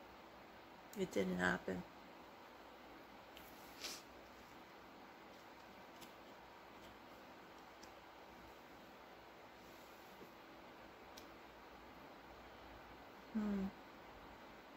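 A woman speaks briefly and softly close by.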